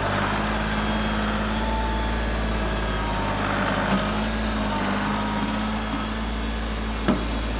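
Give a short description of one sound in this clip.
A tractor's tyres crunch over loose soil.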